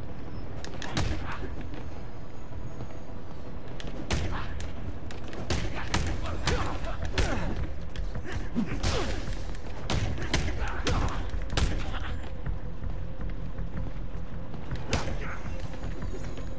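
Punches land with heavy thuds and whooshes.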